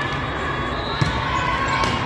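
A hand strikes a volleyball on a serve with a sharp smack.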